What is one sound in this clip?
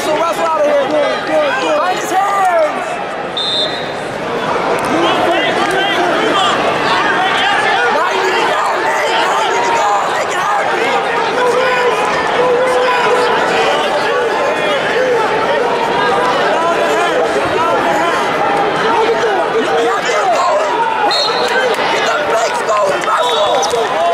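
A large crowd talks and shouts in a large echoing arena.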